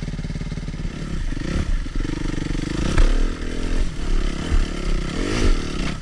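A dirt bike engine revs up and down loudly.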